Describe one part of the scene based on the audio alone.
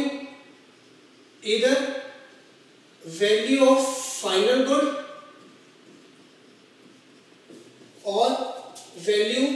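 A man speaks calmly, as if teaching, close to a microphone.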